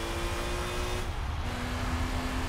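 A racing car engine drops in pitch briefly as a gear shifts.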